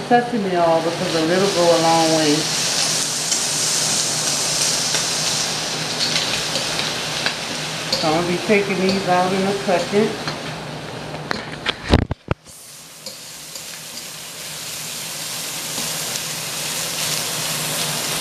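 Metal tongs scrape and clink against a pan.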